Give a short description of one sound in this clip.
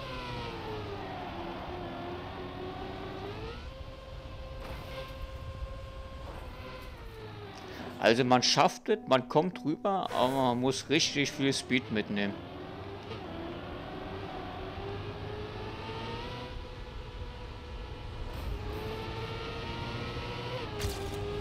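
A racing car engine hums and whines, rising and falling in pitch as it speeds up and slows down.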